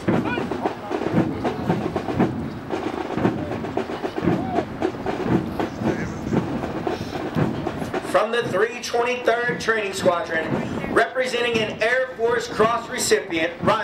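Boots of soldiers tramp across the ground as they march.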